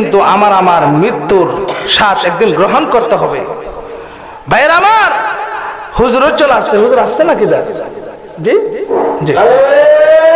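A man preaches with fervour into a microphone, his voice loud and echoing through loudspeakers.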